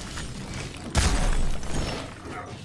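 Ice shatters with a loud crash.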